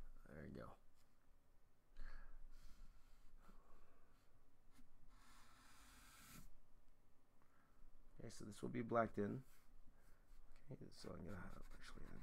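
A marker squeaks as it draws on paper.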